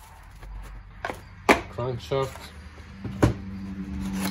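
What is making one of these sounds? A small cardboard box is tapped and handled.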